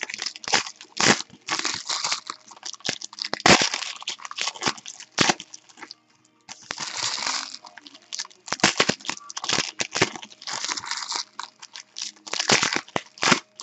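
Foil wrappers crinkle and rustle as they are torn open by hand.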